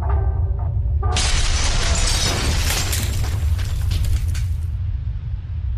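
Stone walls crash and shatter.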